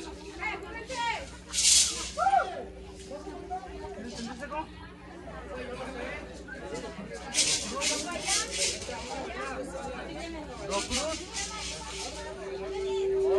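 Rattles shake in bursts outdoors.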